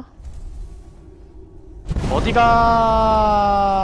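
Fire spells burst and roar.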